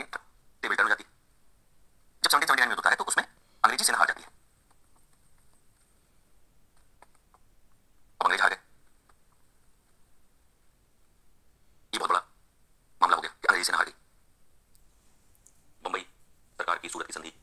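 A man lectures in short bursts of speech, heard through a small loudspeaker.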